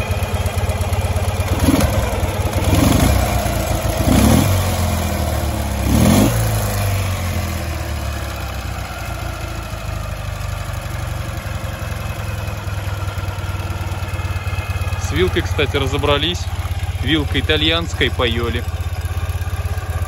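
A motorcycle engine idles with a steady, low, rapid putter.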